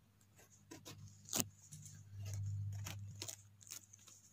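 Hands rub and brush against a mushroom's cap close by.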